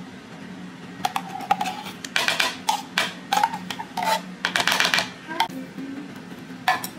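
A metal spoon scrapes inside a tin can.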